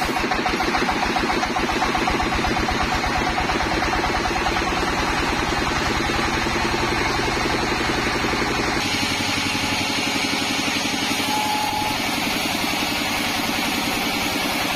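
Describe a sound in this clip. A band saw whirs steadily while cutting through wood.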